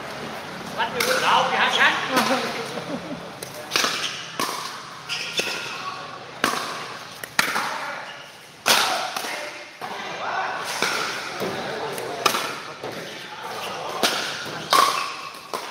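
Paddles pop sharply against a plastic ball.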